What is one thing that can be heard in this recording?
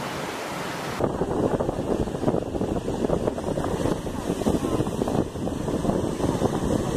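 Waves roll and break loudly against rocks.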